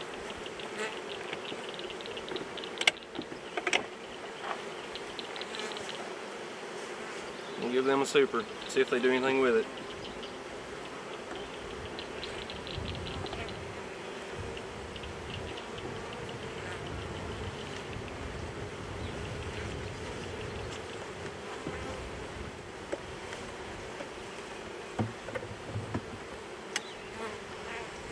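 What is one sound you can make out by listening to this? Bees buzz steadily outdoors.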